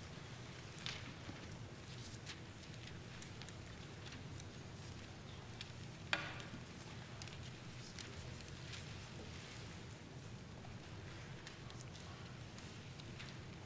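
A congregation murmurs quietly in a large echoing hall.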